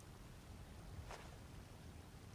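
Coins clink briefly.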